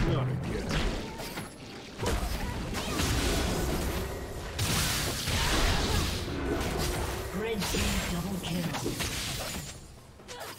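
Game spell effects whoosh and crackle during a fast fight.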